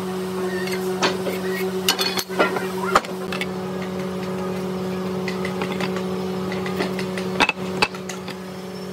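A hand tool knocks and clatters against wood.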